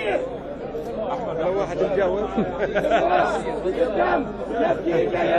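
A crowd chants in reply.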